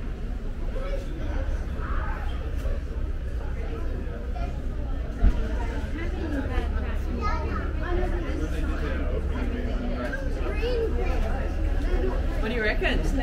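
Several men and women chat nearby.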